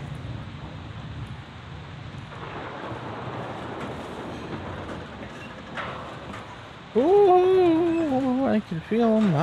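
Boots clang on metal steps and grating.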